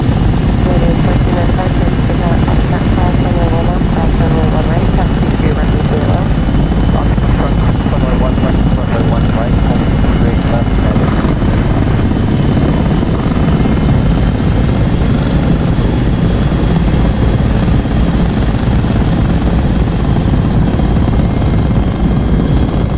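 A helicopter engine drones loudly and steadily, with rotor blades thumping.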